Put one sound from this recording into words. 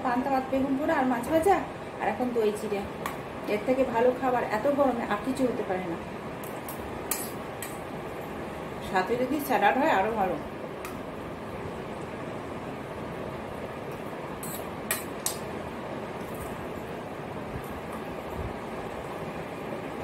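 A spoon clinks against a metal bowl.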